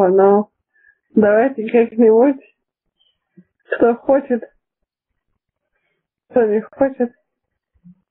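A young person speaks in short phrases over an online call.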